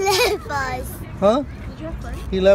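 A young boy laughs close by.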